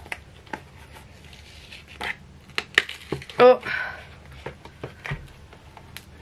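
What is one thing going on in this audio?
A flexible silicone mould creaks and squeaks as hands bend it.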